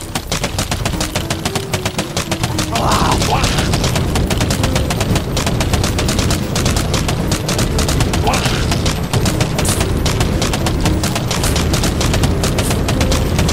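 Game shots pop in rapid succession.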